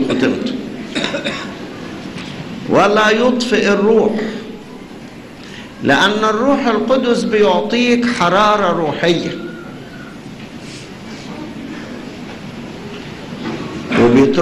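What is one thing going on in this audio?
An elderly man preaches with feeling into a microphone, in bursts with pauses.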